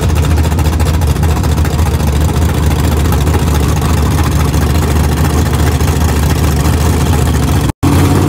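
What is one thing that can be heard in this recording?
A loud engine idles with a deep, lumpy rumble outdoors.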